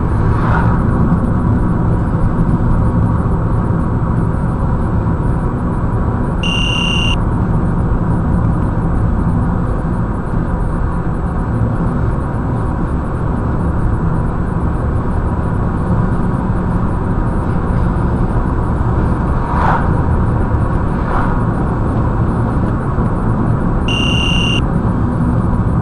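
A car's engine hums steadily while driving along a road.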